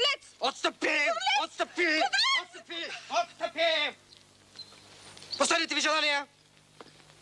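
A man speaks loudly and firmly.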